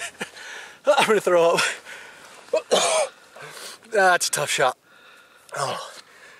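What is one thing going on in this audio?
A man speaks loudly and with strain, close by.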